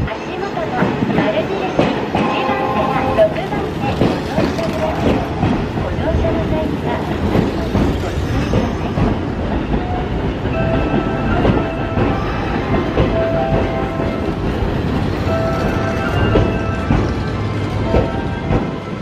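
Train wheels squeal on the rails.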